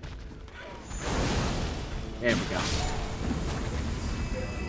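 A blade swings and slashes with a whoosh.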